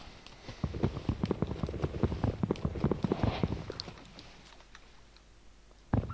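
Bubbles gurgle and pop underwater.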